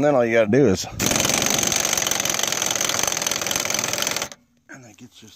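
A cordless drill whirs loudly and steadily.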